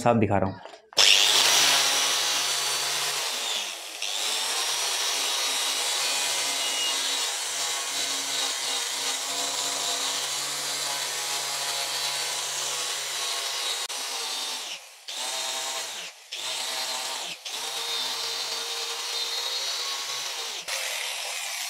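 An electric polisher whirs steadily against metal.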